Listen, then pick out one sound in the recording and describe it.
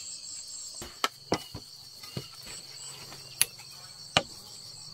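A knife chops and scrapes at bamboo with sharp knocks.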